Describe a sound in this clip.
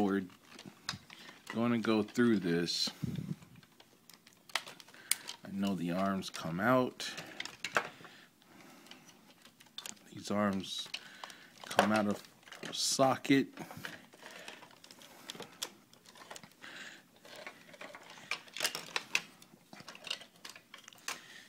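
Plastic toy parts click and snap.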